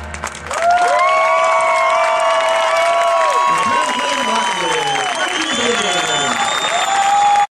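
Drums beat with the band.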